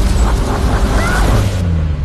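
A person screams.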